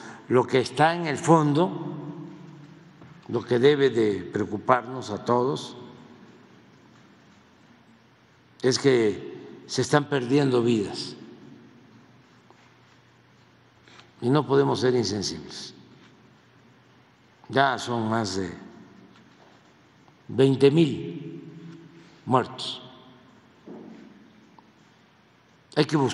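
An elderly man speaks slowly and calmly into a microphone, pausing between phrases, in a large echoing hall.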